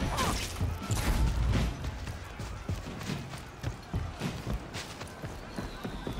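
Armoured footsteps thud steadily on stone and earth.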